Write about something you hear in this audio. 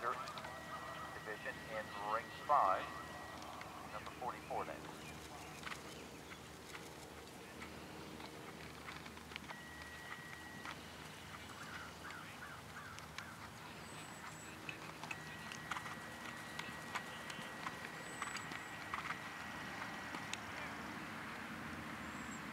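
A horse's hooves thud softly on grass in a steady trot.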